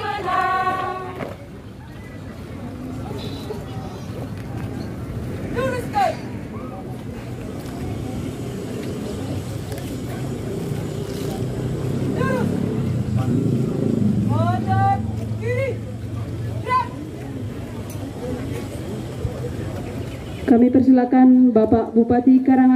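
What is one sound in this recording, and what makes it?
A crowd of onlookers murmurs in the background.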